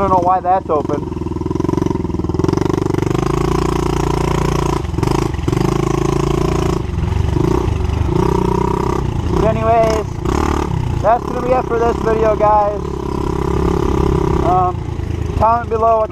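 A dirt bike engine revs up and down loudly, heard close by.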